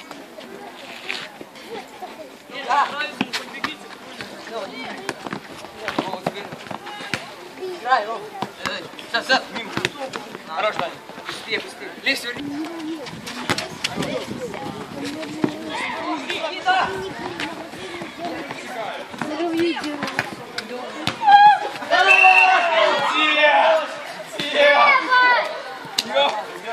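Boys shout and call out to each other during an outdoor football game.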